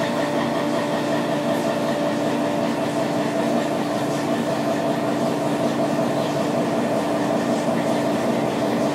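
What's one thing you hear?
Coolant sprays and splashes noisily.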